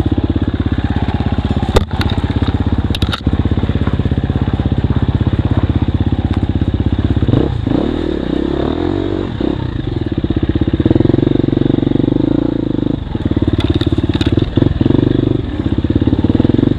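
A dirt bike engine revs loudly up close, rising and falling.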